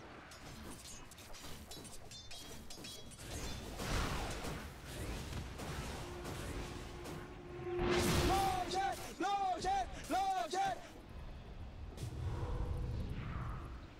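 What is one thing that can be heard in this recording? Fire spells whoosh and burst in a fight.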